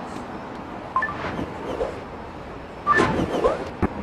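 A bright electronic chime rings twice.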